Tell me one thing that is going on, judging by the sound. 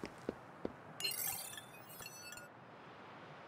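An electronic control panel chirps and beeps.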